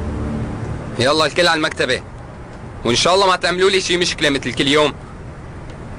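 A man speaks firmly and loudly close by.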